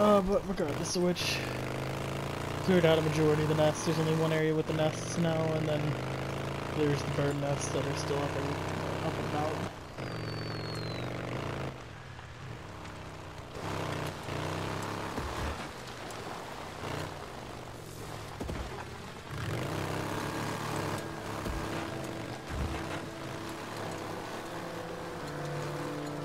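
A motorcycle engine rumbles steadily and revs up and down.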